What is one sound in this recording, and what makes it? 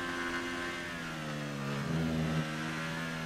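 A Formula One car's engine drops in pitch as it downshifts under braking.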